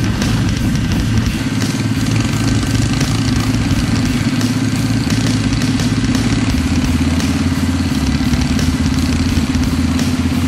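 A motorcycle engine hums loudly and steadily up close.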